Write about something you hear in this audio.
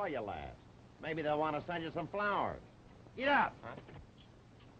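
A man answers in a calm voice.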